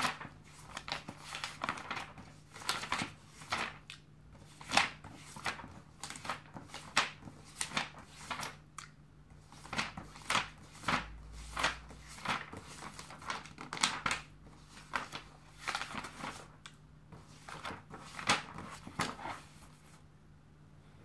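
Pages of a glossy magazine rustle and crinkle close by as they are handled and turned.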